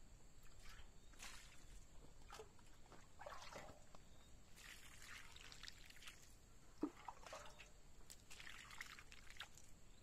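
Water splashes onto soil from a scoop.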